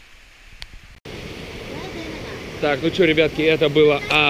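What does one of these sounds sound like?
A stream rushes over rocks nearby.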